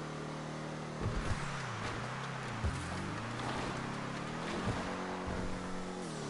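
Tyres skid and scrape on a dirt surface.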